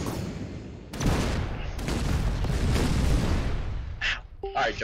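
An explosion booms in a game.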